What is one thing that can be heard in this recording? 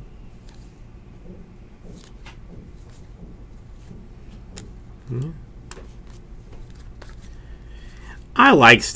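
Trading cards slide and flick against each other in quick, soft clicks.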